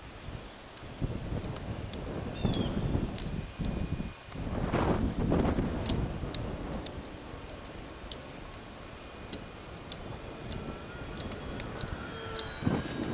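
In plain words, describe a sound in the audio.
A model plane's engine buzzes overhead, rising and falling as it passes.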